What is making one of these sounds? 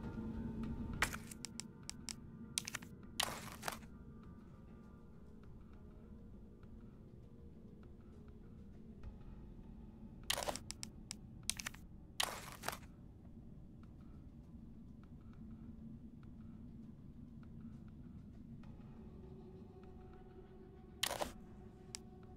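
Short menu clicks tick several times.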